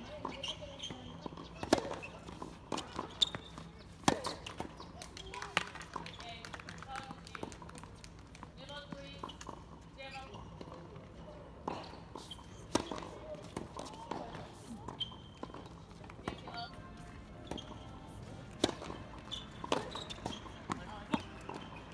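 A tennis ball bounces on a hard court with dull thuds.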